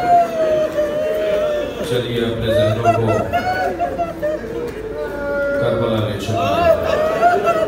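A man chants loudly in long, drawn-out notes through a microphone and loudspeaker.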